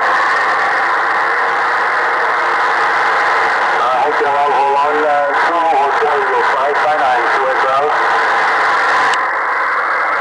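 Static hisses steadily from a shortwave radio receiver.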